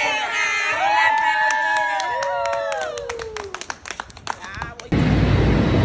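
Young women sing and cheer excitedly.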